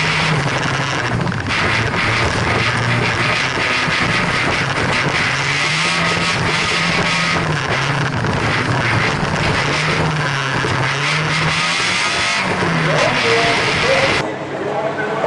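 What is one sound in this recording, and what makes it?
A car engine roars and revs up and down loudly from inside the car.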